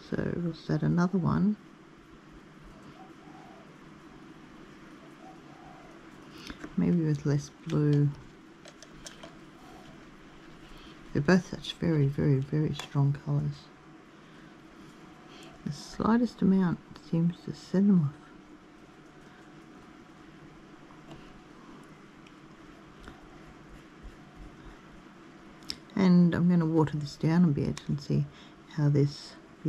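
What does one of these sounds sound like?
A paintbrush strokes softly across paper.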